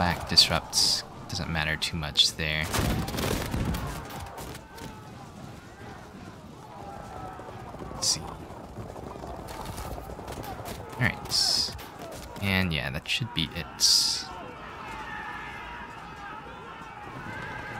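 Muskets fire in scattered volleys across a battlefield.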